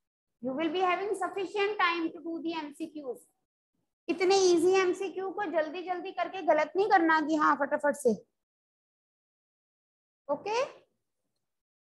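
A woman speaks clearly and explains, close by, with pauses.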